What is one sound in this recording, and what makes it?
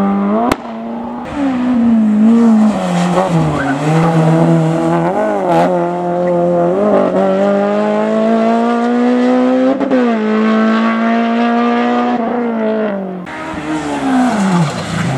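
A second racing car engine roars past, revving hard between gear changes.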